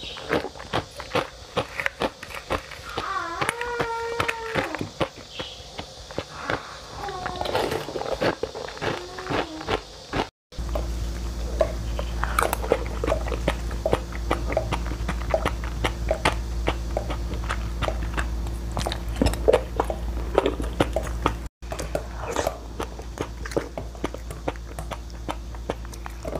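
A metal spoon scrapes through crunchy ice crystals.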